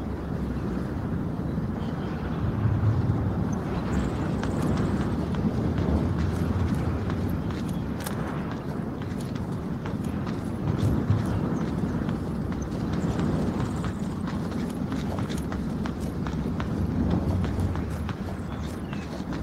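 Footsteps tap steadily on a hard stone pavement.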